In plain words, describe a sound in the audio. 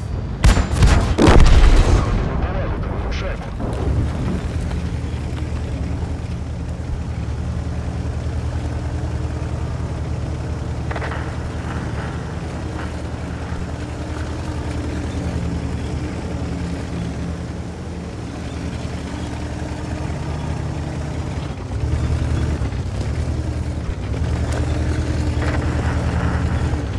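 A heavy tank's diesel engine rumbles as the tank drives.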